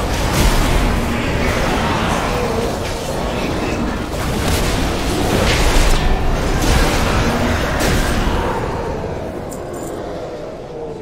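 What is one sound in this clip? Spell blasts and combat effects whoosh and crash loudly.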